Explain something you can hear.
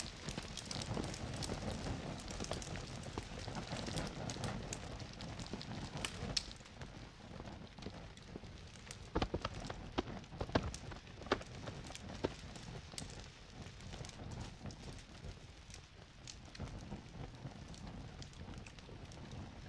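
Flames flare up from a bowl with a soft whoosh.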